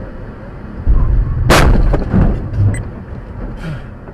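A car hits the roadside with a heavy bang and scraping.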